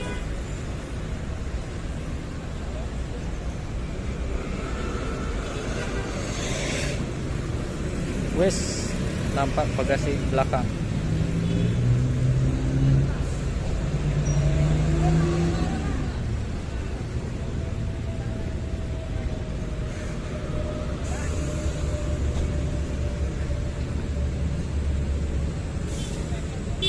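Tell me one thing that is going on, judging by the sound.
A diesel coach bus rumbles as it rolls forward slowly.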